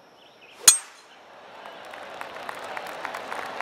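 A crowd cheers and applauds, growing louder.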